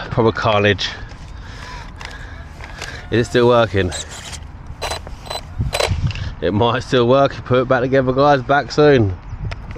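Plastic parts of a toy car click and rattle as hands handle them.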